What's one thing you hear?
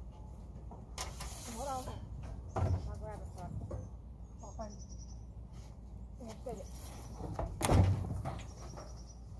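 A wooden crate knocks and scrapes against a truck bed.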